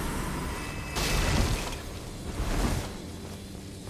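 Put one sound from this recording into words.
Wooden crates smash and splinter.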